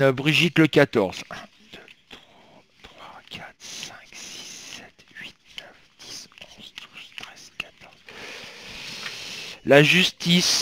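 Playing cards riffle and flick softly.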